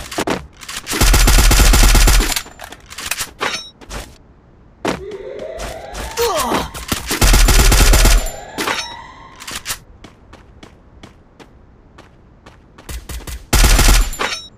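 A rifle fires loud, booming shots.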